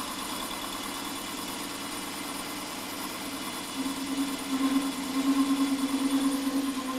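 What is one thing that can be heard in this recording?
A cutting tool scrapes against turning metal, growing louder.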